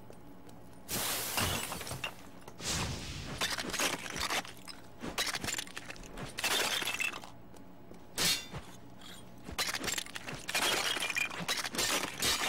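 Glass panes shatter loudly.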